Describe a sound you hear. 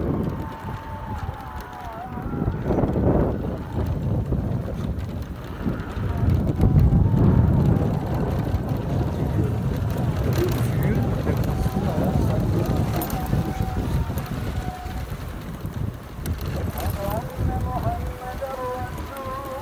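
Wind buffets and rumbles against a microphone on a moving motorcycle.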